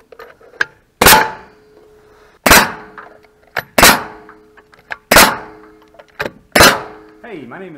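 A nail gun fires nails into wood with loud sharp bangs.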